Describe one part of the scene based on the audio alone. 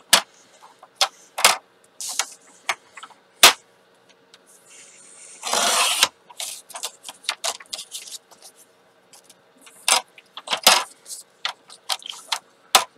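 Paper and card rustle and tap as they are handled.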